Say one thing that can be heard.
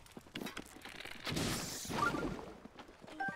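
A fiery blob bursts with a whooshing crackle.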